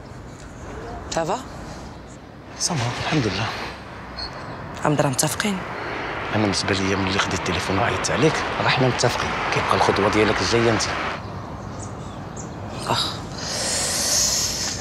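A woman speaks with irritation.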